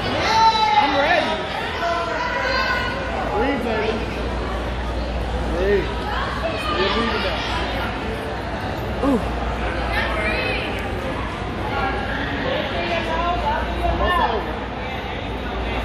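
A crowd of people chatters and calls out in a large echoing hall.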